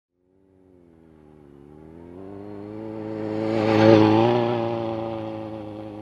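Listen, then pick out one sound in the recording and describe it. A motorcycle engine roars as the bike approaches, growing louder, then passes close by and fades.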